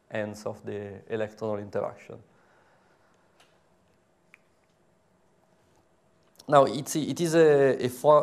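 A man lectures calmly through a microphone, pausing briefly.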